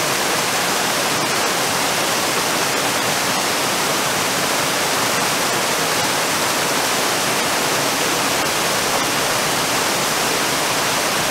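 A waterfall roars steadily as water crashes into a pool below.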